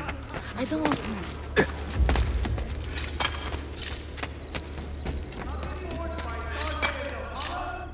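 Hands scrape and thud while climbing a stone wall.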